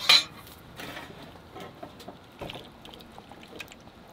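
Corn kernels pour from a can and patter into a metal tray.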